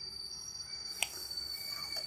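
A plastic ruler clicks down onto paper.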